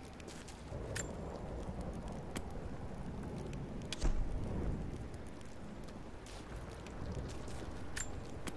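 Short, sharp menu clicks sound now and then.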